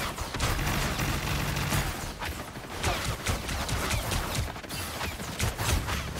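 Game blasts and impacts crackle rapidly.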